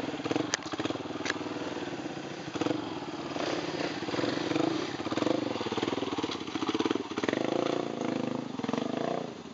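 A motorcycle engine revs and sputters loudly up close.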